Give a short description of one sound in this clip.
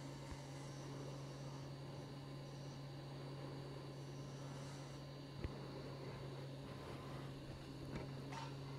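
A wood lathe motor hums steadily.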